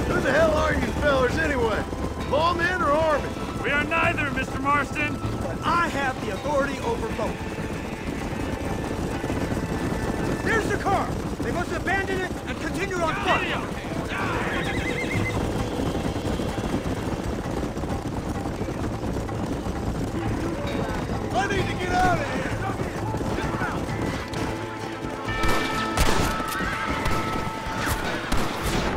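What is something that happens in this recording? Horses' hooves pound steadily on a dirt track at a gallop.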